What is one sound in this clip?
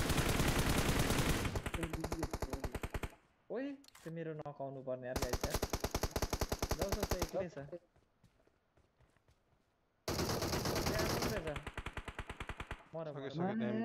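Rapid bursts of automatic gunfire rattle loudly.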